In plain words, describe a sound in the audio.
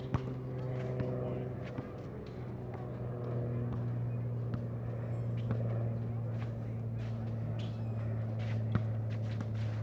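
A basketball bounces on hard pavement outdoors.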